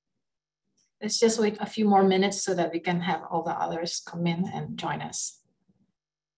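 A middle-aged woman speaks calmly through a microphone on an online call.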